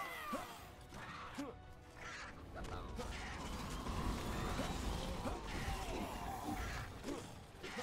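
Spells whoosh and zap as a hero attacks.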